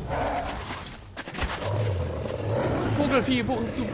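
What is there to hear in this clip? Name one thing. A beast snarls and growls loudly.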